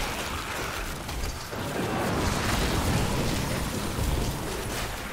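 Fiery explosions boom.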